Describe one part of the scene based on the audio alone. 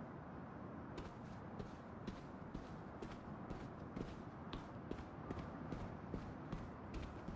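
Footsteps tap across a floor at a quick pace.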